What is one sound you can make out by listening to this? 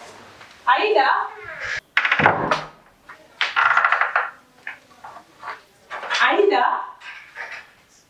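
A wooden door creaks and thuds shut.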